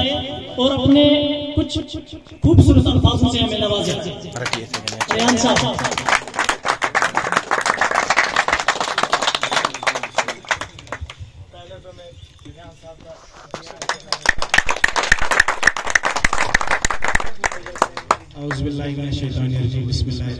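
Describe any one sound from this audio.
A man speaks loudly through a microphone and loudspeaker.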